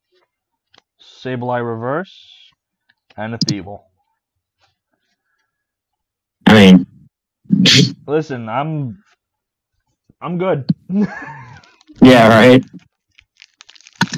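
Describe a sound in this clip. Trading cards rustle and slide against each other.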